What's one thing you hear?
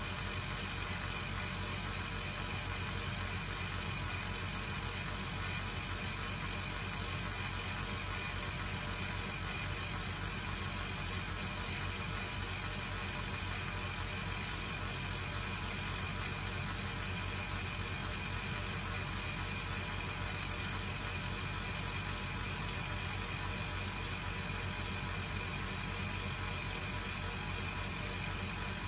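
Water trickles steadily from a spout into a glass jug.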